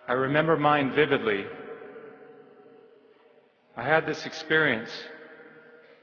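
A man speaks slowly and deliberately through a microphone in a large echoing hall.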